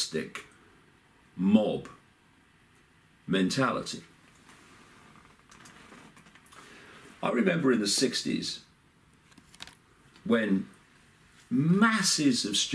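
An older man speaks calmly and slowly, close by, with long pauses.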